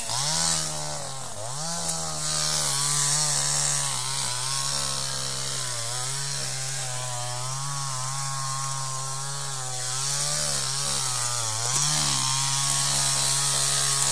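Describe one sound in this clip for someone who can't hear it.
A trials motorcycle engine revs up and down.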